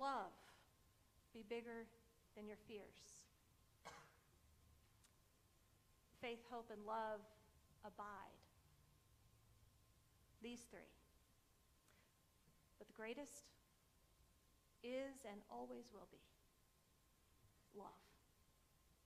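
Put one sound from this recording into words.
A woman speaks calmly with pauses, heard through a microphone in a large echoing hall.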